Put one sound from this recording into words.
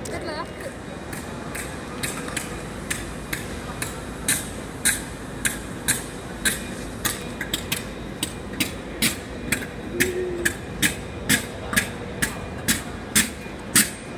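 A diesel locomotive idles nearby with a rhythmic ticking.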